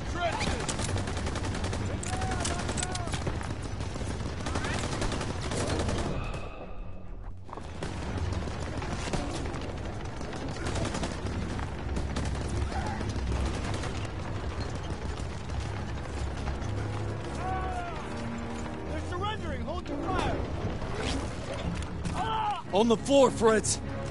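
Gunfire crackles and pops all around in a battle.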